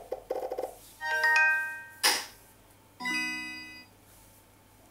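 A mobile game plays bright, tinkling chime effects.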